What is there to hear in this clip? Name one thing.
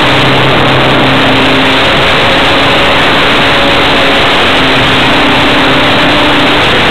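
A small motor buzzes steadily, its pitch wavering.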